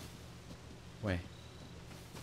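A horse snorts nearby.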